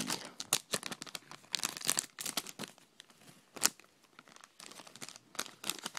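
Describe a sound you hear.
A foil packet is torn open.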